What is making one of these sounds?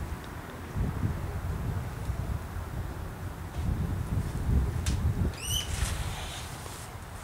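A young woman calls out from a distance outdoors.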